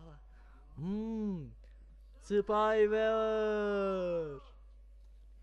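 A man shouts out a long, drawn-out cry, heard through a television speaker.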